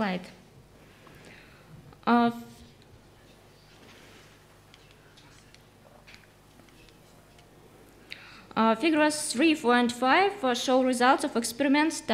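A woman speaks calmly into a microphone, with long pauses.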